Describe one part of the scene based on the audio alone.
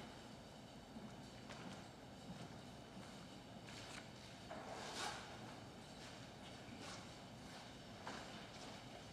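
Soft footsteps and light knocks echo faintly in a large, quiet hall.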